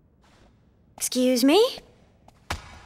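A young woman says something briefly and calmly, close by.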